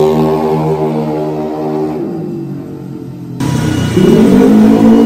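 A motorbike engine hums and revs nearby.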